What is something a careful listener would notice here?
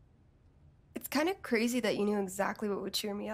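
A young woman speaks calmly and casually.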